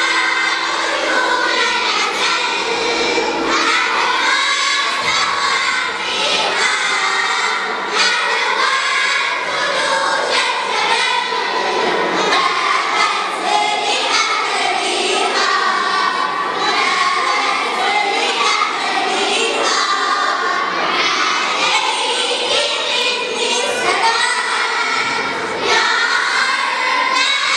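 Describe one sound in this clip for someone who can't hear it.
A choir of young girls sings together through microphones in an echoing hall.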